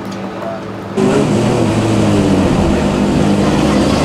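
A car engine idles and rumbles loudly.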